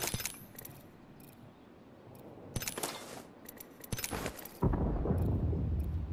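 Short menu clicks and beeps sound in a video game.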